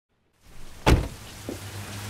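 A door shuts with a loud thud.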